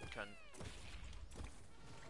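A cannon shot bursts into flames in a video game.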